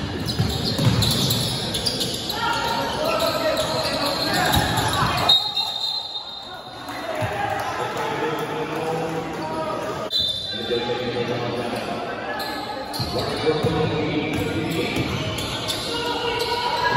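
Young men shout to each other in a large echoing gym.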